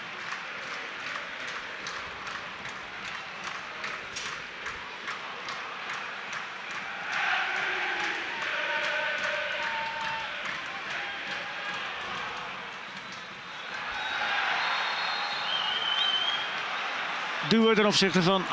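A large stadium crowd cheers and chants in the distance.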